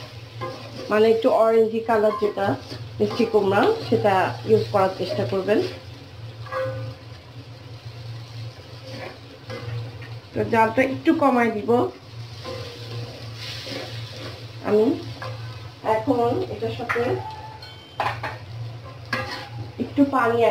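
Food sizzles gently in a hot wok.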